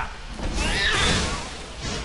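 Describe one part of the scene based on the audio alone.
A fiery magic blast whooshes and crackles.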